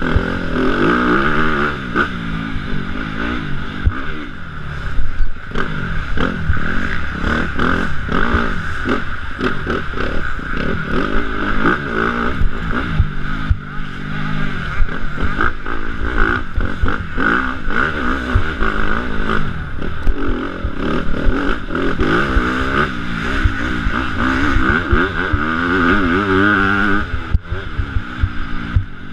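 A dirt bike engine revs and roars up and down.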